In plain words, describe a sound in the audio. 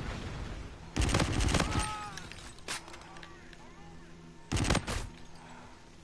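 A rifle fires in short, loud bursts.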